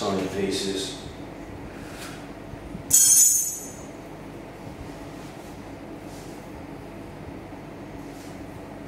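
A cord swishes and rubs as it is twisted by hand.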